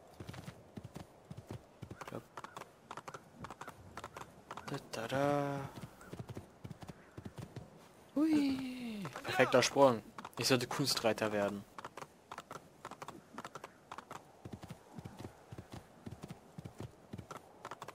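A horse gallops with quick, steady hoofbeats.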